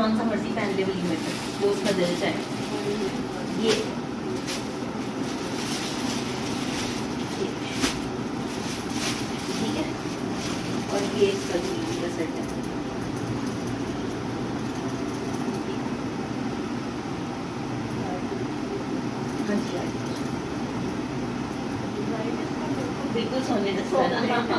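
Two women talk calmly and close by.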